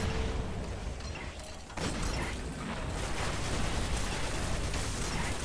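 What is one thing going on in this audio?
A large mechanical walker rumbles and whirs heavily.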